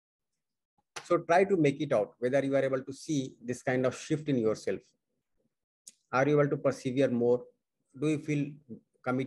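A man speaks calmly and clearly into a close microphone, pausing now and then.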